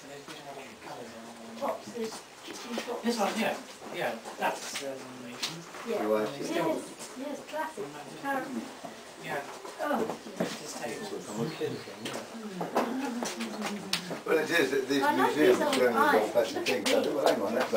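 A man talks casually in the background.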